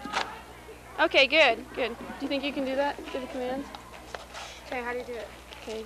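Young women talk and call out nearby, outdoors.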